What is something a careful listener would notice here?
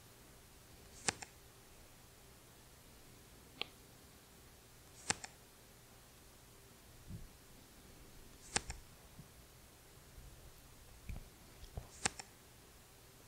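A playing card flips over with a short, soft snap.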